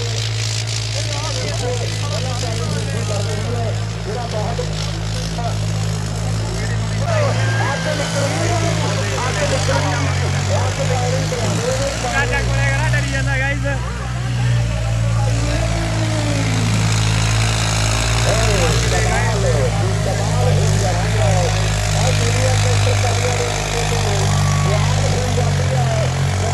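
Tractor engines roar loudly and steadily.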